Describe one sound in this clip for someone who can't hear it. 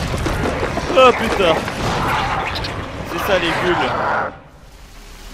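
Monstrous creatures snarl and roar loudly.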